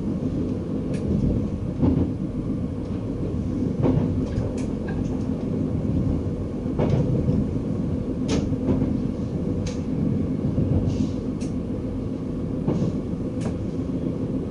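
Wheels clatter over rail joints at irregular intervals.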